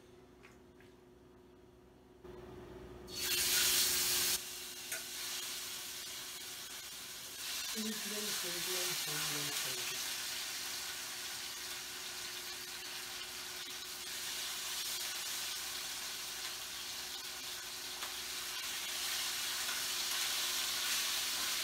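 Metal utensils clink against a pan.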